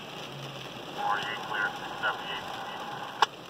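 A fire truck sounds its horn in short blasts nearby.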